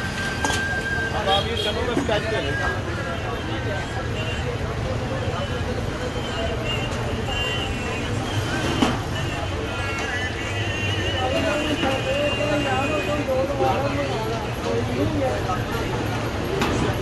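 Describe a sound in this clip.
A metal ladle scrapes and clanks against a large pot.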